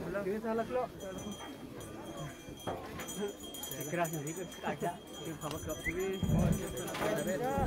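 Several men and women talk and sing nearby.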